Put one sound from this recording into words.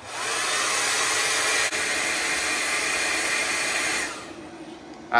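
A heat gun blows with a steady loud whoosh, then switches off.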